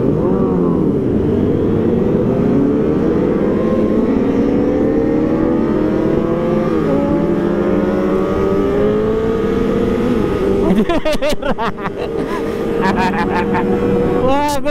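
Other motorcycle engines rev and hum nearby.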